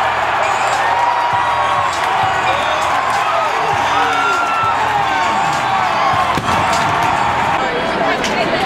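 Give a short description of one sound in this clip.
A huge crowd cheers and roars loudly in a large echoing stadium.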